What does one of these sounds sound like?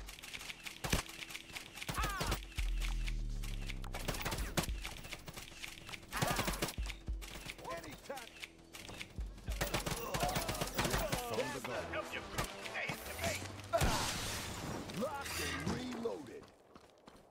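Game sound effects and music play loudly.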